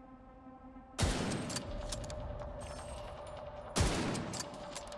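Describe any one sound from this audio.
A rifle fires two loud, booming shots.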